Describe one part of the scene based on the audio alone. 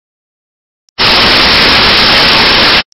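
Loud static hisses.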